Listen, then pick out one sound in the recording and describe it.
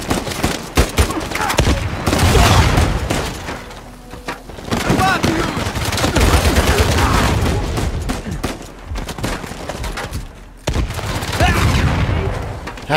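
A young man talks excitedly into a close microphone.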